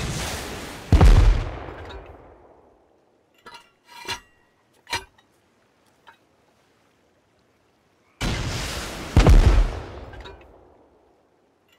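A rocket explodes with a heavy boom that rumbles away.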